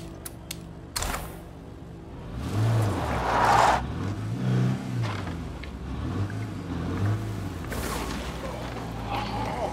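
A car engine runs and revs as the vehicle drives over a dirt road.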